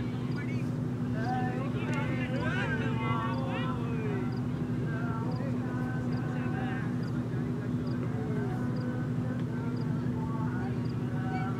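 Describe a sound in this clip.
Young male cricket fielders call out across an open ground.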